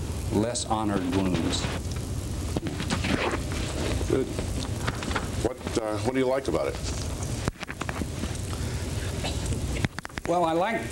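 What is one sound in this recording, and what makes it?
A man speaks into a microphone, heard through a loudspeaker in an echoing hall.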